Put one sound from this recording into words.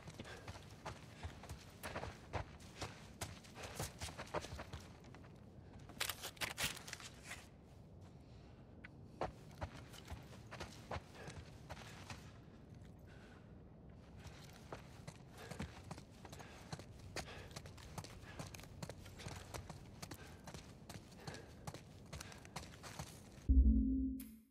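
Footsteps tread slowly over a hard floor.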